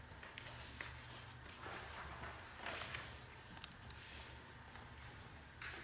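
Cloth rustles softly as a man unfolds it.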